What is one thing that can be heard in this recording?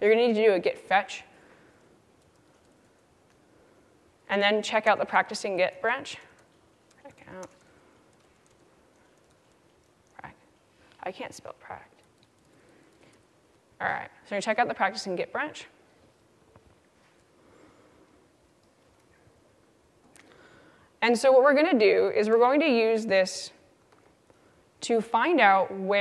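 A young woman speaks calmly into a microphone, pausing between phrases.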